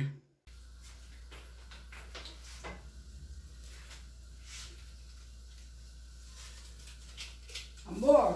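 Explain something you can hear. Pots and dishes clink and knock.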